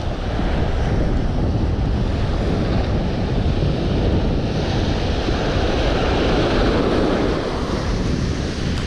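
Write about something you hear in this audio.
Wind blusters against the microphone.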